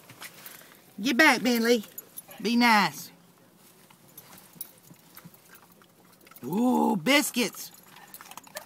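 A dog whines in high, wavering cries close by.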